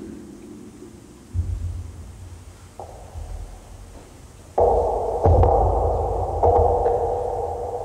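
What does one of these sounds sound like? A modular synthesizer plays droning electronic tones that shift abruptly.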